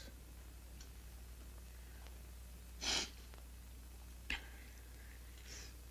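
A spoon clinks against a bowl.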